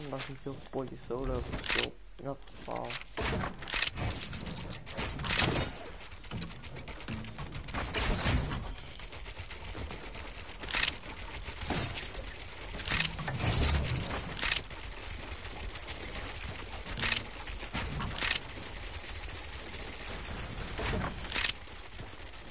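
Building pieces snap into place in a game with sharp, quick clatters.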